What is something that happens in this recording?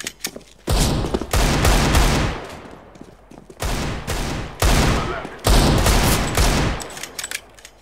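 Pistol shots ring out loudly with a sharp echo.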